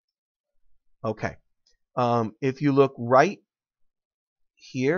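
A man speaks calmly through a computer microphone, in short phrases with pauses.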